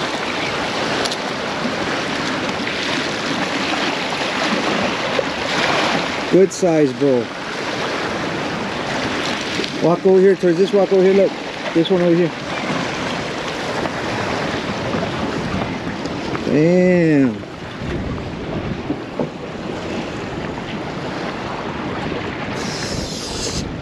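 Waves splash against rocks.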